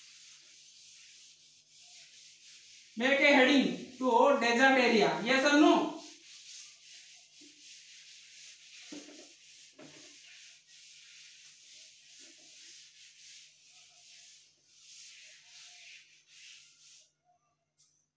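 A duster rubs and swishes across a chalkboard.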